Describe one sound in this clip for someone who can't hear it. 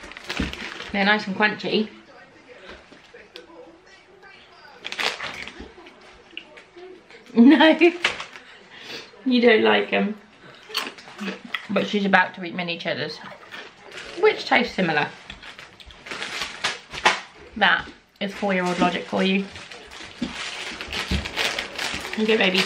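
Paper crinkles as a packet is handled.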